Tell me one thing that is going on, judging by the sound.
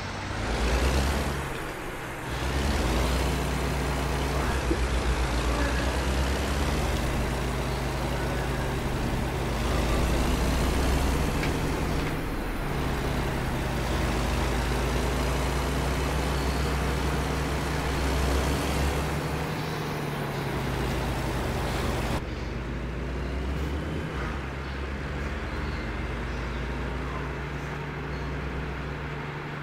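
A truck's diesel engine rumbles steadily as it drives.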